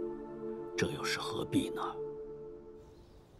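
An elderly man speaks with emotion, close by.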